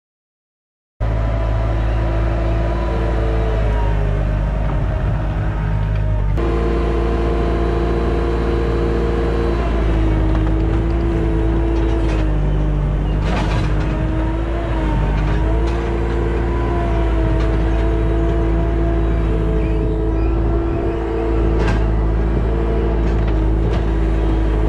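A diesel loader engine rumbles steadily close by, its pitch shifting slightly.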